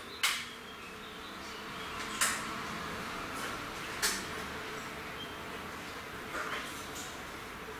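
A man puffs on a pipe with soft sucking and popping sounds.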